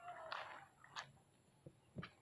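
A small fish splashes out of calm water close by.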